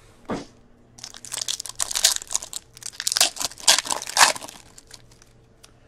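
A foil wrapper crinkles and rips open.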